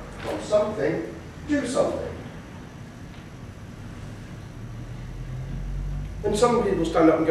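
A man speaks aloud with pauses, close by.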